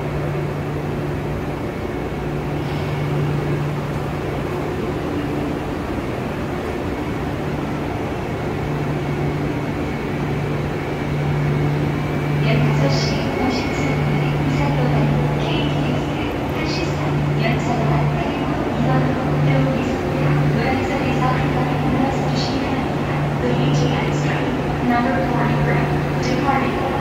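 A train hums steadily while idling in a large echoing hall.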